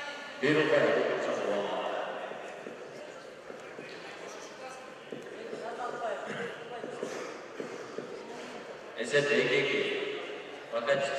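A man calls out loudly in an echoing hall.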